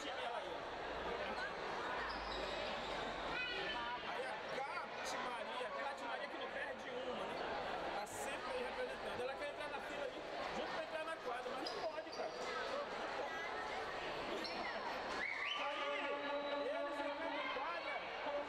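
A large crowd chatters and cheers in an echoing indoor arena.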